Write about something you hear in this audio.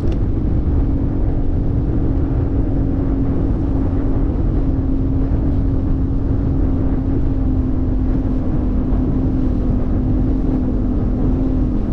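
A boat's outboard motor drones steadily at speed.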